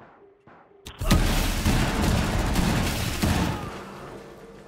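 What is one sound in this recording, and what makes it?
Gunshots fire in a loud, rapid burst.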